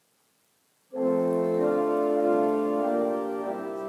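A pipe organ plays slow sustained chords.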